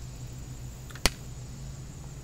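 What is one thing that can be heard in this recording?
A metal can clicks sharply in a young man's hands.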